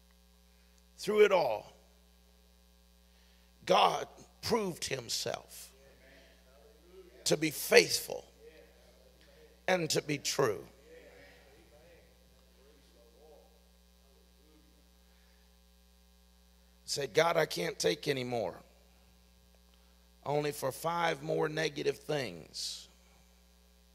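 A middle-aged man speaks slowly into a microphone, with long pauses.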